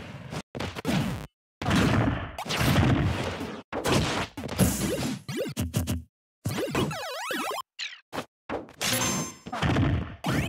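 Blows land with sharp thumping hits.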